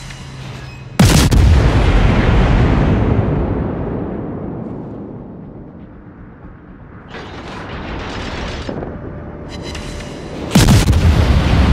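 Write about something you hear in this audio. Heavy guns fire with deep booms that rumble away slowly.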